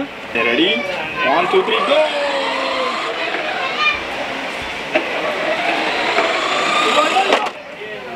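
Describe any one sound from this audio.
A toy car's electric motor whirs as it drives.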